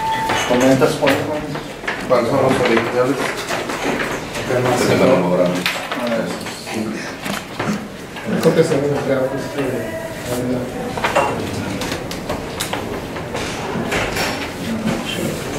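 A man speaks calmly at close range.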